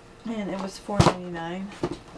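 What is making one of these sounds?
A cardboard box is set down on a table with a soft thud.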